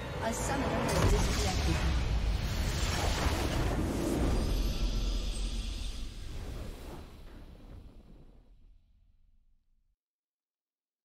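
A triumphant victory fanfare swells and fades out.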